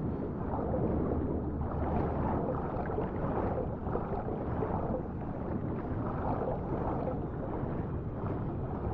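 A swimmer kicks and strokes through water.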